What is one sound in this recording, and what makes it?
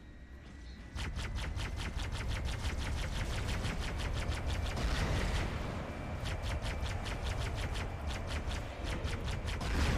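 Rapid bursts of gunfire rattle on and on.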